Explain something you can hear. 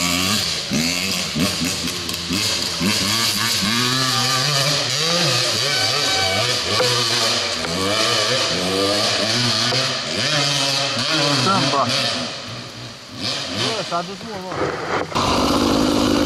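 Several dirt bike engines idle and rev nearby.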